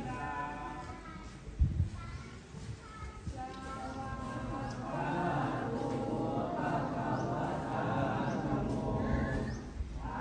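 A group of young boys chant together in unison.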